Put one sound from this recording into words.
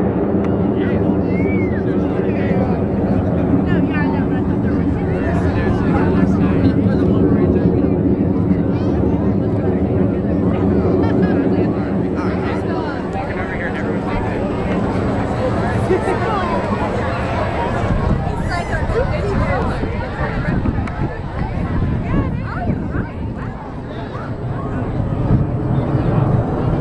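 Jet engines roar steadily in the distance overhead.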